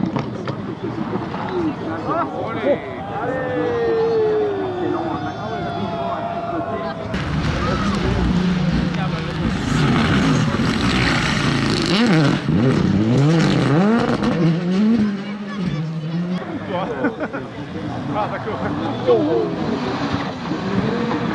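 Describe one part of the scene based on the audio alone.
A rally car engine revs hard.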